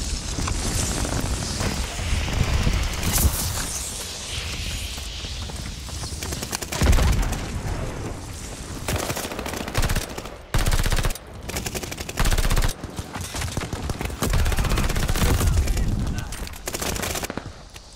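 A submachine gun fires rapid bursts.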